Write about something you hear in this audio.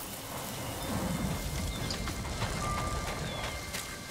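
Footsteps hurry over grass and leaves.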